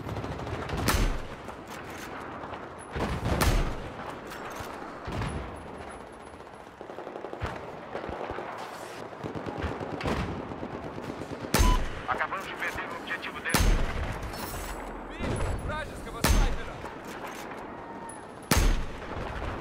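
A rifle fires loud single shots, each followed by a short echo.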